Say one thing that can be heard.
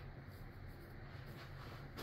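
A paintbrush brushes softly across a canvas.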